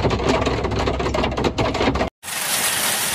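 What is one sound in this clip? Hail drums hard on a vehicle's roof and windscreen.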